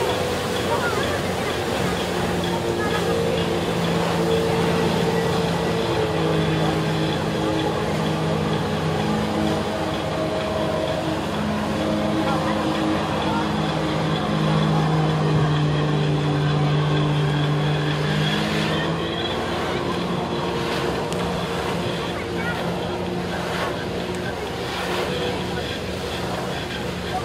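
Powerful water jets hiss and splash onto the sea.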